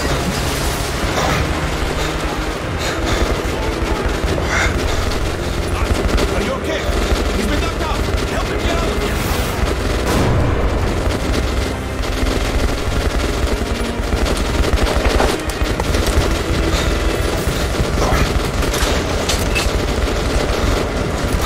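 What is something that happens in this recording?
Gunshots crack in bursts.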